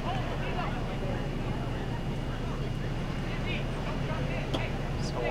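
Young women shout to each other in the distance across an open field.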